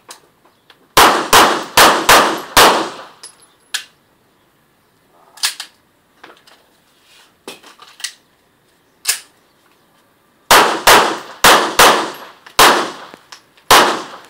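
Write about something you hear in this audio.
A pistol fires rapid shots that echo outdoors.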